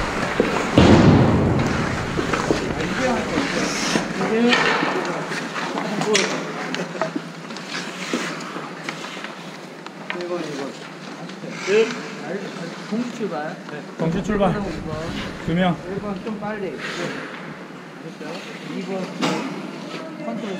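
A man speaks calmly to a group in a large echoing hall.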